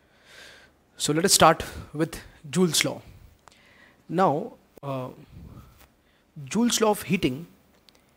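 A young man speaks calmly and clearly into a close microphone.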